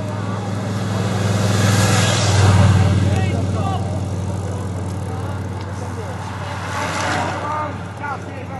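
Racing bicycles whoosh past close by.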